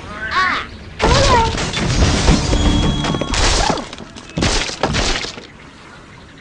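Wooden blocks crash, clatter and break apart.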